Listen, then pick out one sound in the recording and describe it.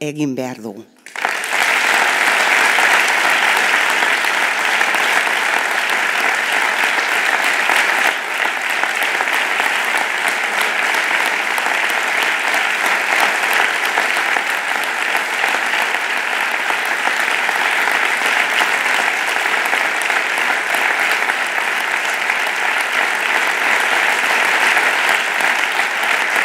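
A crowd applauds and cheers loudly and steadily.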